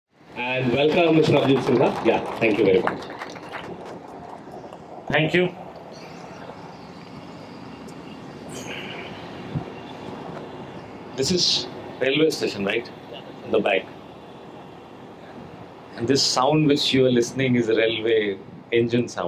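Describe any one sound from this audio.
A middle-aged man speaks calmly into a microphone over a loudspeaker, with pauses.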